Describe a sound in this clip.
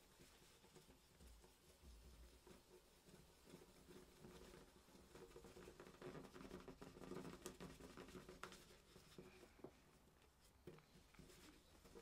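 Paper tissue rustles and crinkles as fingers rub it against a small plastic frame.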